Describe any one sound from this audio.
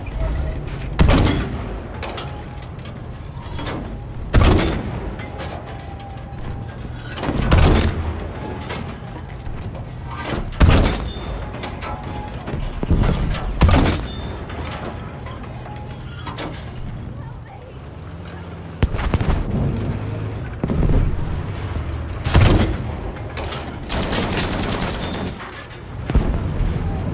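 A rifle fires loud single shots at intervals, each echoing away.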